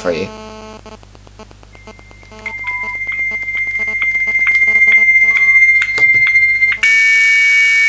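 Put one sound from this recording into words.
Keypad buttons on a mobile phone beep as they are pressed.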